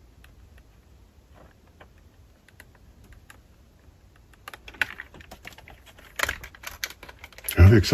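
Small plastic toy cars click and rattle as they are handled.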